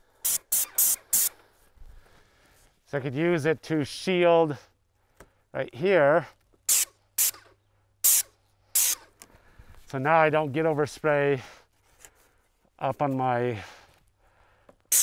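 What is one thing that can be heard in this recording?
A paint sprayer hisses in short bursts.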